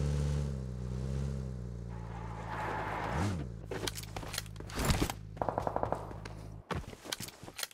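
A car engine idles and revs.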